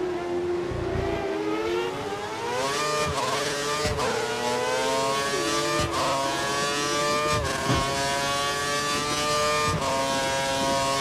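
A racing car engine screams at high revs, rising and dropping sharply as gears shift.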